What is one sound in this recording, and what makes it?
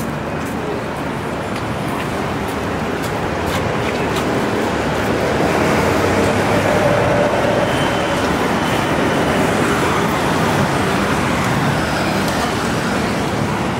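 City traffic rumbles steadily along a wide road outdoors.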